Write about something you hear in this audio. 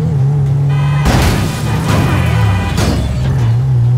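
A car crashes into another car with a loud metallic bang.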